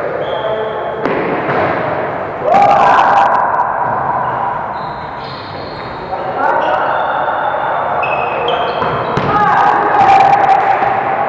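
A volleyball smacks against hands.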